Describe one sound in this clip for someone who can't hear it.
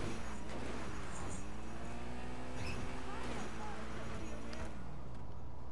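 A car engine revs and drones.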